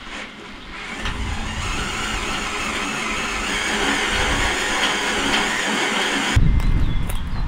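An electric drill whirs steadily as it bores through metal.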